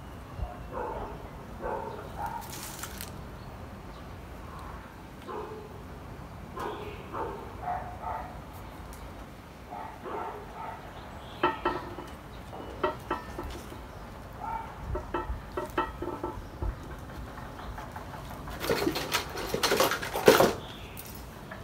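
Leaves and twigs rustle as a small tree is handled.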